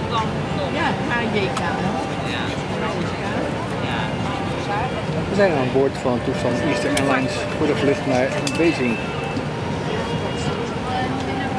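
A steady low hum fills an aircraft cabin.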